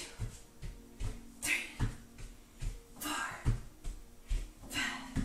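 Bare feet thump softly on a floor mat in a steady rhythm.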